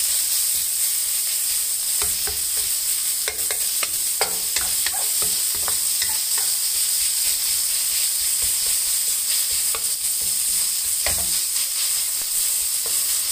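Minced meat sizzles steadily in a hot pan.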